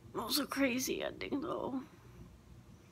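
A young woman speaks close by in a low, glum voice.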